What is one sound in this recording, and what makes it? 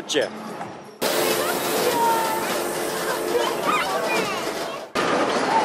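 A kiddie ride hums as it spins.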